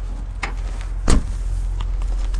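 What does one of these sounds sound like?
A car trunk lid slams shut with a thud.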